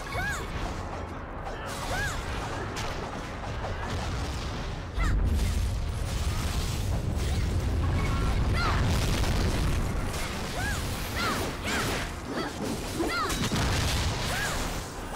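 Swords and blades swish and clash in a fight.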